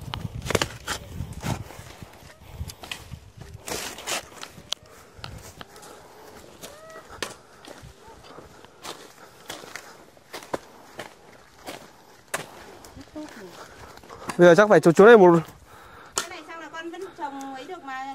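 Hoes dig and scrape into stony soil with repeated thuds.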